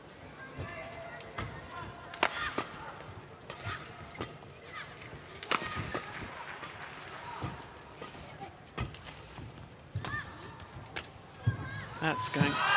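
Rackets hit a shuttlecock back and forth with sharp pops.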